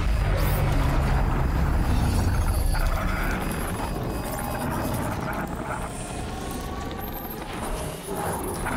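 A heavy metallic machine rumbles and roars.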